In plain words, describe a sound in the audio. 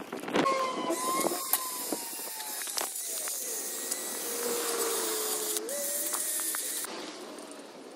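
A power sander whirs steadily against metal.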